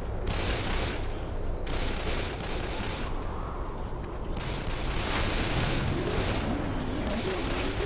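Footsteps tread steadily on dry grass and dirt.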